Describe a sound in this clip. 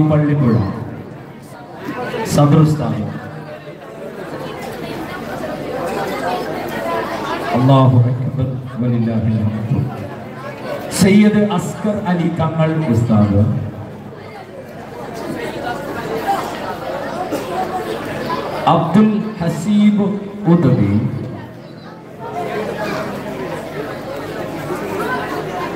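A man speaks with animation through a loudspeaker.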